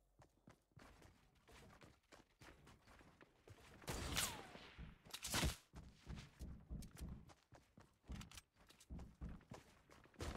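Footsteps thud quickly on wooden stairs.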